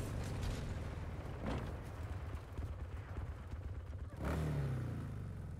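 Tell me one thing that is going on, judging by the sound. A motorbike engine rumbles and revs.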